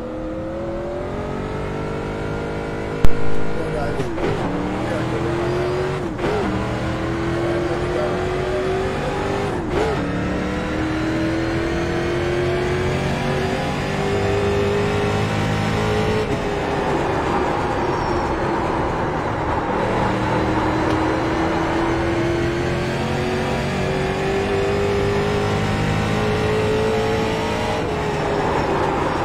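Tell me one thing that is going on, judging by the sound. A race car engine roars steadily, its pitch rising as it speeds up and dropping when it shifts gear.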